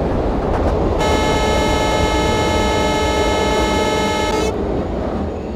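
A train horn blares for a few seconds.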